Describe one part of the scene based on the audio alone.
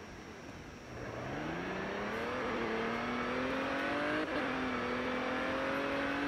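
A car engine revs up as the car accelerates.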